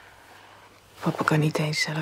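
A woman speaks softly close by.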